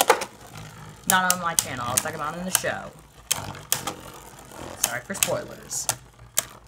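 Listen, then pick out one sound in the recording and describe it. A plastic toy launcher clicks and rattles.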